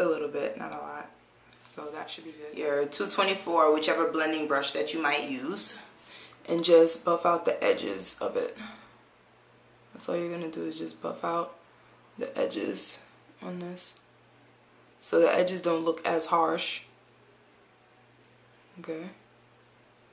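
A young woman talks calmly and close by, pausing often.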